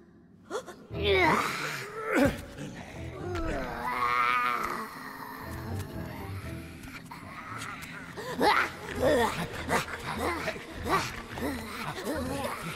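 Large creatures growl and roar loudly.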